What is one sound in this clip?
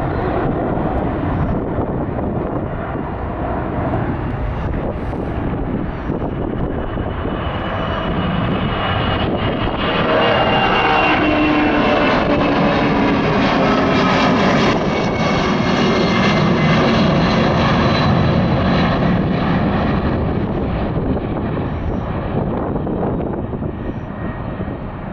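A jet airliner roars loudly overhead as it climbs, then slowly fades into the distance.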